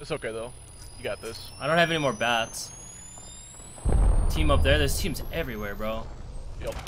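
A healing device charges with a rising whine.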